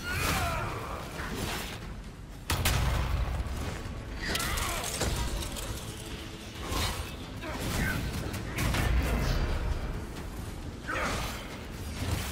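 Magic blasts crackle and boom.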